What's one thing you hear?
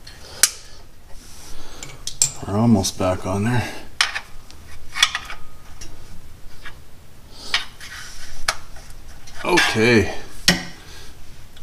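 Metal tools click and tap against metal up close.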